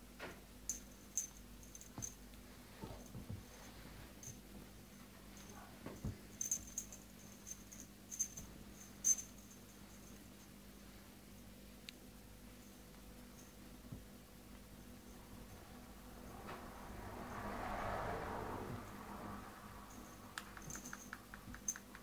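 A small animal scrabbles and rustles against fabric.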